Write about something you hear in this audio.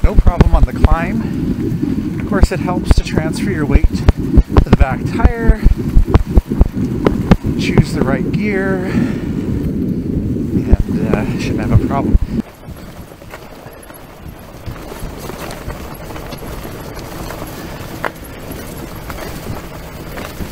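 Wind rushes past a moving bicycle.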